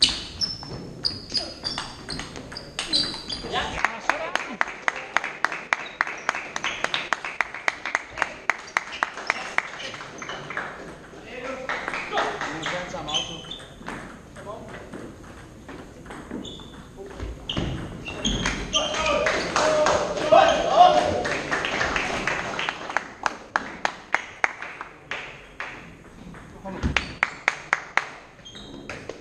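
A table tennis ball clicks quickly back and forth off paddles and the table in a large echoing hall.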